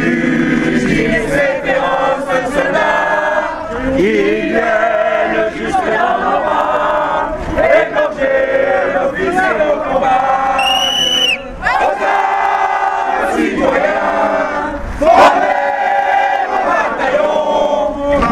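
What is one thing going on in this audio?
A crowd of men and women sings and chants loudly together outdoors.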